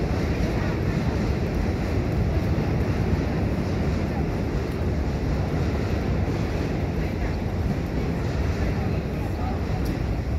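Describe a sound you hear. Outdoor street noise rumbles steadily.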